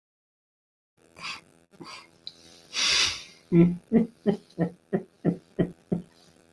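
A young man laughs heartily over an online call.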